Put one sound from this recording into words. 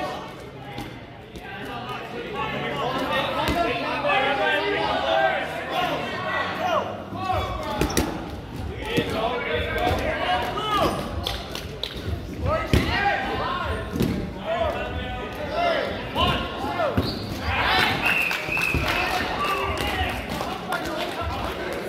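A crowd of young people talk and shout with animation in a large echoing hall.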